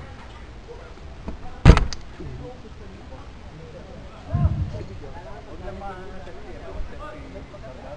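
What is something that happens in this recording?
Young men talk and call out to each other nearby, outdoors.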